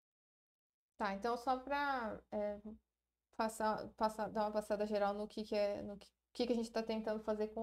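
A young woman speaks calmly through a microphone, as in an online call.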